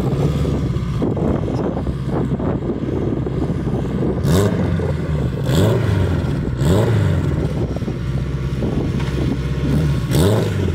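A car engine revs hard and repeatedly close by.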